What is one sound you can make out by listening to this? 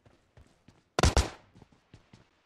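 A wooden door bangs open.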